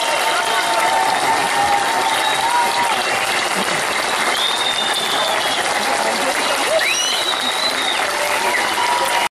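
A large crowd applauds loudly and steadily outdoors.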